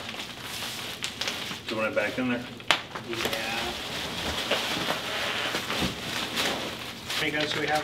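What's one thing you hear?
Plastic packing rustles and crinkles.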